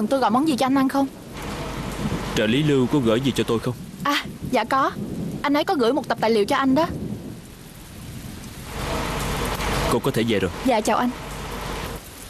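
A young woman speaks politely nearby.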